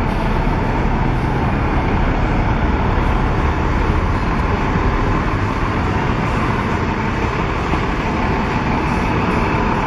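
A car drives slowly past close by.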